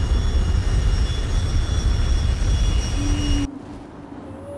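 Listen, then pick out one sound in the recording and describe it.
A large flying engine rumbles low and steadily.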